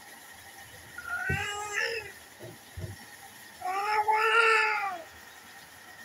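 A baby cries and whimpers close by.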